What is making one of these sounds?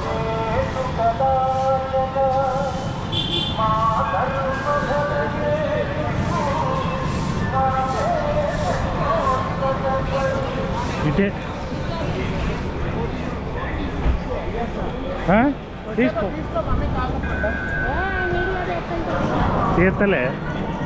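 Traffic rumbles steadily along a busy street outdoors.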